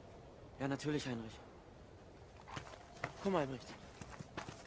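A young man speaks up sharply, close by.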